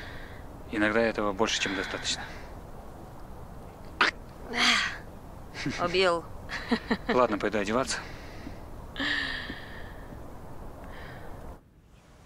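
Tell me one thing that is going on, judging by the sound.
A young man talks softly.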